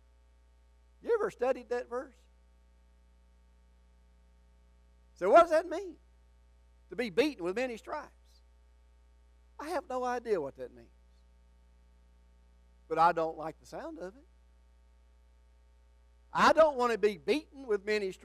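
An elderly man speaks slowly and earnestly through a microphone, in short phrases with pauses.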